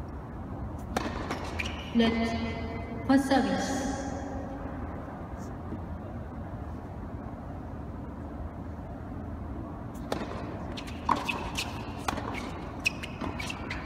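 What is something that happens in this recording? Tennis balls are struck with rackets in sharp pops.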